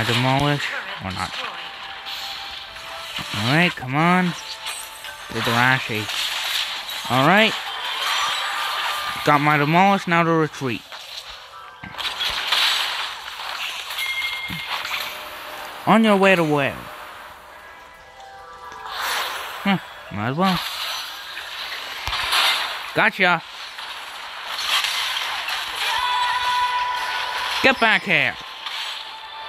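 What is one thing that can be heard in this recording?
Game spells blast and clash in quick bursts.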